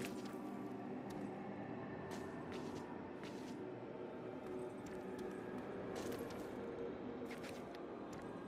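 Footsteps tread on stone and gravel.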